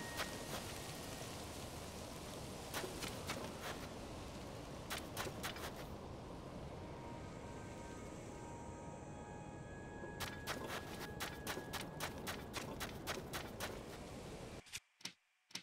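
Wind blows steadily with a soft hiss.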